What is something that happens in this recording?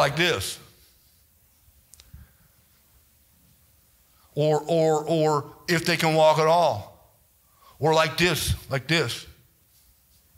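A man preaches with animation into a microphone over loudspeakers, in an echoing hall.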